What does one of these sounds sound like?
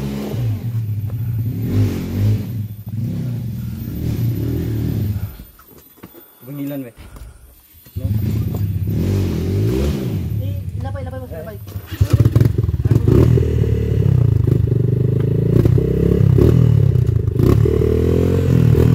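A motorcycle engine revs and labours loudly nearby.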